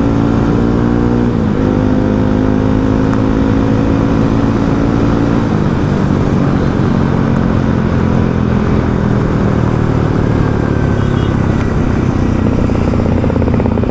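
A motorcycle engine hums steadily close by, shifting pitch as it changes gear.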